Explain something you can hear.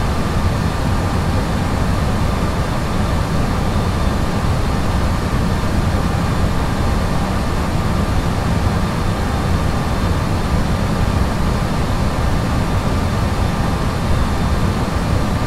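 A jet airliner's engines roar steadily, heard from inside the cockpit.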